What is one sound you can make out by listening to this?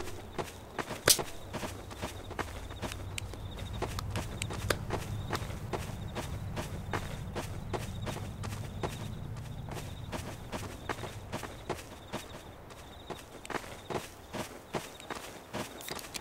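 Footsteps tap at a steady walking pace.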